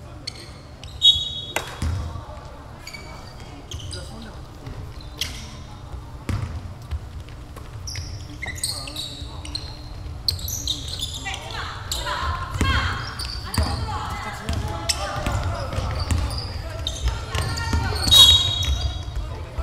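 A basketball bounces on a hard wooden floor.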